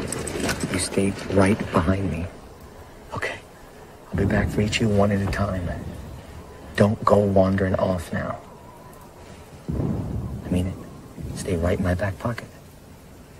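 A man speaks tensely in a low voice, close by.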